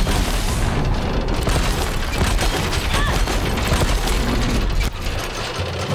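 A large mechanical creature clanks and roars.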